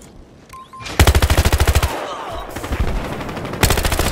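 Rapid bursts of automatic rifle fire ring out close by.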